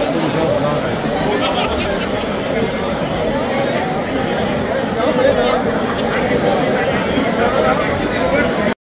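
A brass band plays a lively tune in a large echoing hall.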